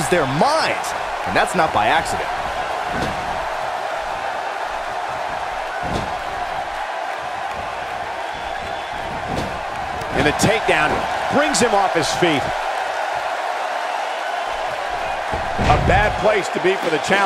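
A large crowd cheers in an arena.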